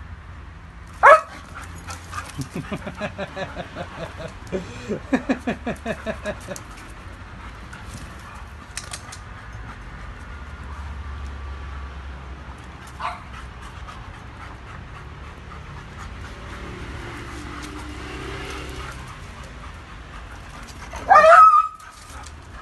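A dog barks sharply up close.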